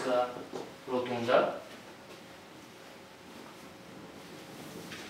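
Fabric rustles.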